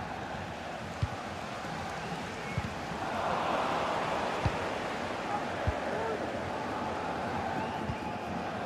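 A football is kicked with dull thumps now and then.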